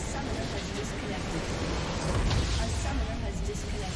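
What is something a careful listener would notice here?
A huge crystal explodes with a deep, rumbling boom.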